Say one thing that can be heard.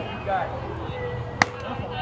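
A bat cracks sharply against a ball outdoors.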